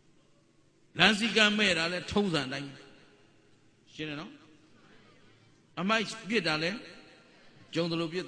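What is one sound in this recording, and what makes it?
A middle-aged man speaks calmly and firmly into a microphone, in bursts with pauses.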